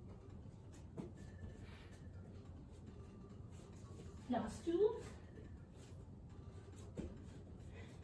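Hands thump softly onto an exercise mat.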